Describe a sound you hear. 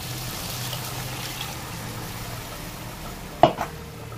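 Liquid pours into a pan.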